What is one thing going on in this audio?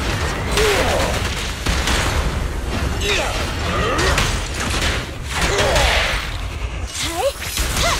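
Blades slash and whoosh in quick bursts.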